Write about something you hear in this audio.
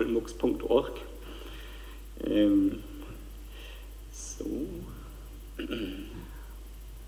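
A man speaks in short phrases through a microphone in a large hall.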